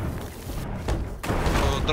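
Water sprays and hisses through a leak.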